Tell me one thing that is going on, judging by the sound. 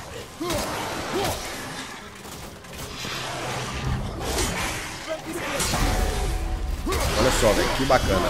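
Heavy blows thud and clash in a fight.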